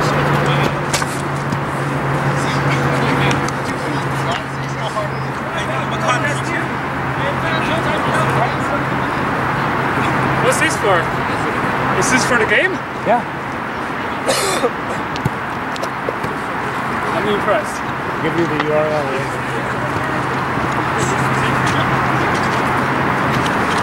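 Men shout to each other in the distance, outdoors.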